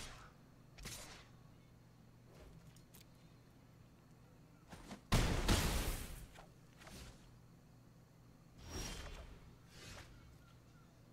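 Game cards land with whooshing and thudding effects.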